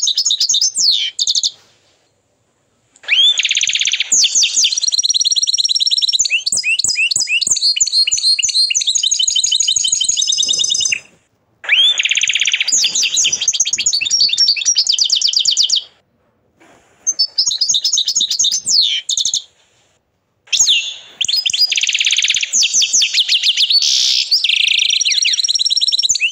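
A canary sings loud, rapid trilling phrases with short pauses between them.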